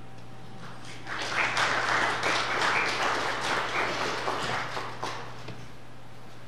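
A small audience applauds in a hall.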